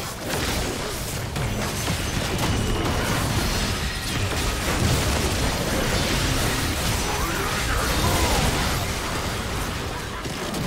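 Spell effects whoosh and crackle as game characters fight.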